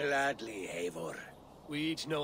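A man speaks briefly and calmly.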